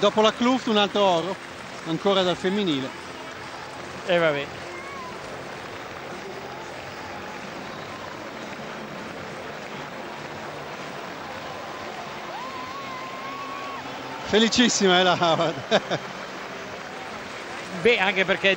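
A large stadium crowd cheers and murmurs steadily.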